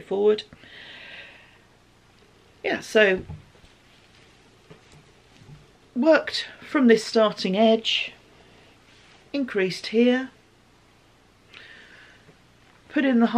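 Knitted fabric rustles as it is handled.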